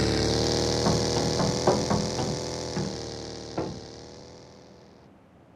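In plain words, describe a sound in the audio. A motorbike engine hums steadily, then fades away.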